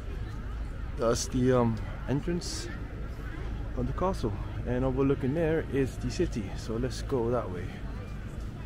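An adult talks outdoors with animation.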